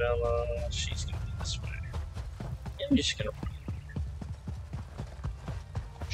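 Footsteps tread steadily on a stone path.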